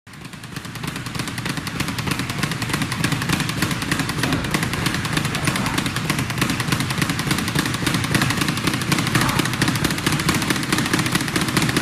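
A speed bag rattles in a fast, steady drumming rhythm as it is punched.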